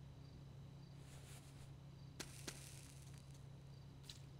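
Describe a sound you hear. A man shifts and rises from a soft sofa with a rustle of cushions.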